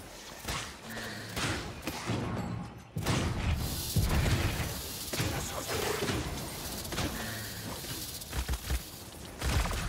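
Rapid video game weapon blasts and effects ring out.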